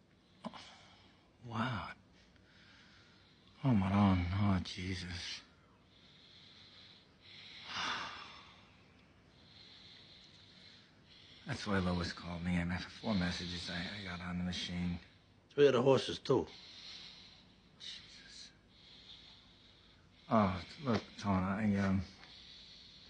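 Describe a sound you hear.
A man speaks in a low, strained voice, close by, with pauses.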